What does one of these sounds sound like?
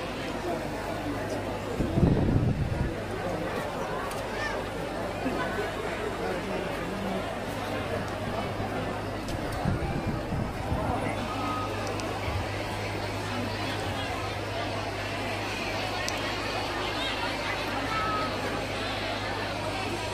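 A large crowd chatters all around.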